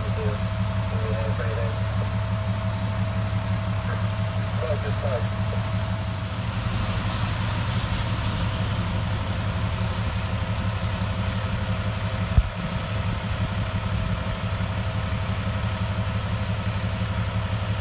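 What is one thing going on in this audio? Fire truck engines idle with a steady low rumble.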